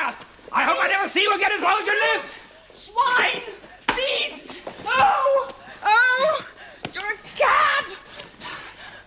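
A woman screams and shrieks in a struggle.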